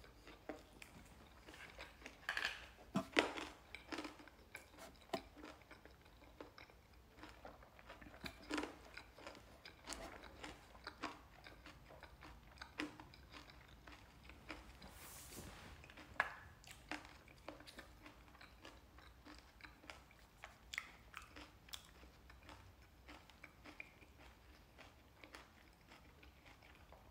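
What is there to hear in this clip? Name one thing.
A young man chews salad.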